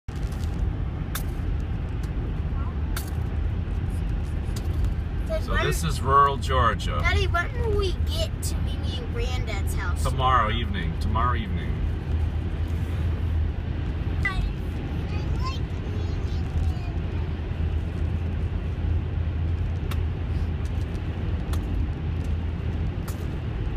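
A car engine hums steadily from inside while tyres roll on a paved road.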